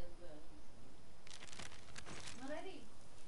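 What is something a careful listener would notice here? A paper map rustles as it is folded.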